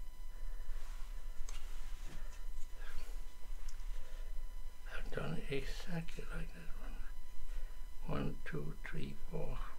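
Small wooden pieces click and clack together as they are handled.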